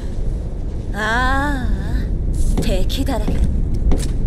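A young woman speaks with a playful, rising voice.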